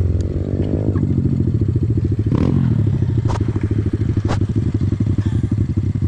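Another dirt bike engine buzzes nearby.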